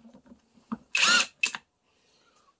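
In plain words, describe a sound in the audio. A cordless power tool whirs briefly.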